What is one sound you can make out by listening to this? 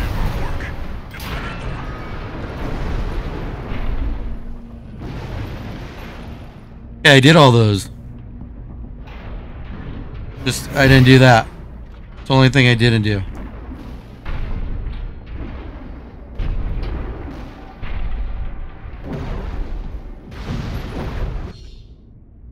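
Explosions and blasts burst loudly.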